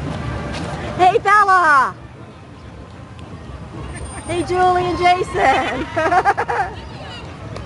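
A woman talks and calls out close by.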